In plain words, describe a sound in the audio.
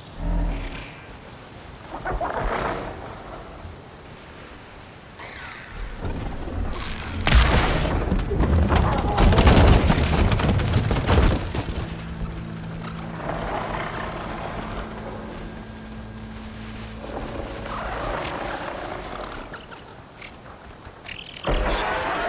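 Tall grass rustles as someone creeps through it.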